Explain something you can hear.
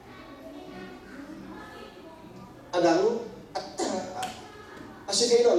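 A man speaks calmly into a microphone, heard through loudspeakers in a large echoing room.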